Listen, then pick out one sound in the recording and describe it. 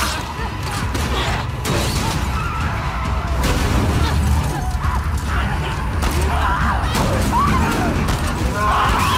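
A car engine rumbles as a vehicle drives off.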